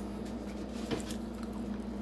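A cookie scrapes lightly on a metal baking tray.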